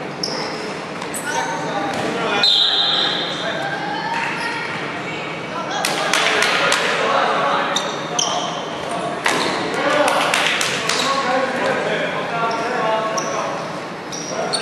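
Players' sneakers squeak on a wooden floor in a large echoing hall.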